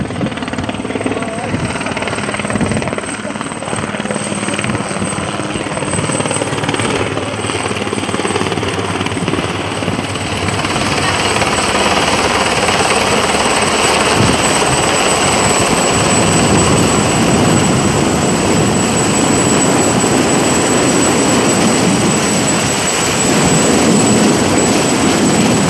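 A helicopter's engine and rotor roar overhead, growing louder as it comes closer.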